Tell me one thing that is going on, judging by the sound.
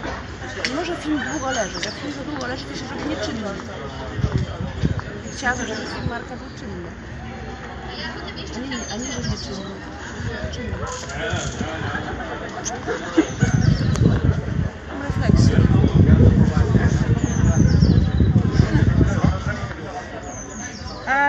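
A young woman talks calmly close by, walking outdoors.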